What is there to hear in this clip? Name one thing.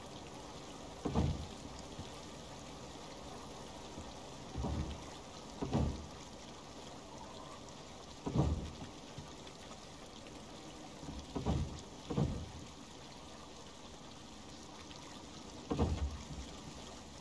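Wooden logs thud heavily as they are set into place, now and then.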